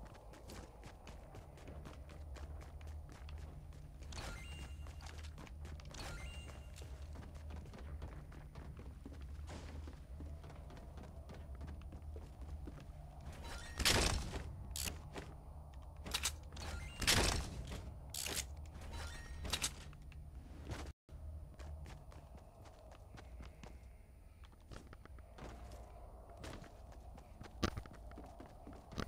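Footsteps patter quickly on hard floors and wooden stairs.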